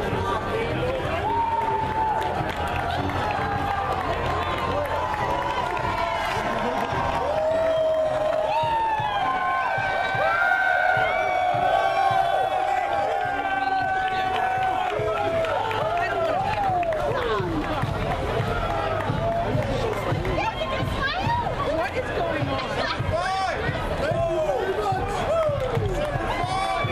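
A crowd of men and women cheers and shouts from nearby outdoors.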